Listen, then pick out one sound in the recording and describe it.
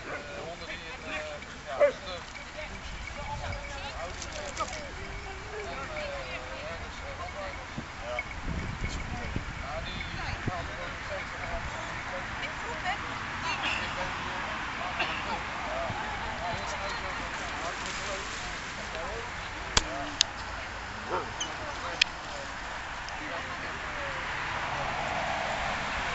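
Dogs bark and yelp nearby outdoors.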